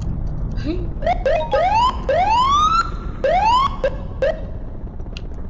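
A fire truck siren wails in rising and falling sweeps.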